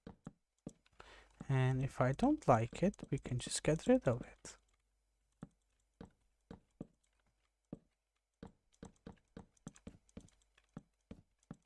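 Blocks are placed with short, soft knocks.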